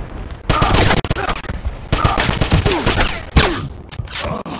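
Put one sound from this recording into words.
Gunshots crack and bang in quick bursts.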